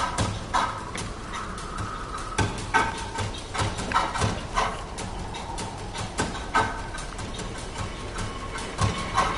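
A bowstring twangs as arrows are fired, one after another.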